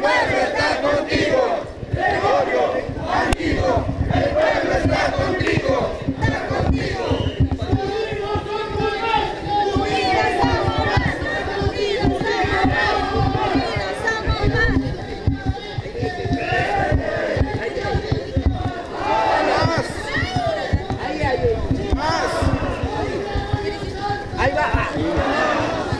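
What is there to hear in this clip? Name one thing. A crowd of marchers chants and shouts loudly outdoors.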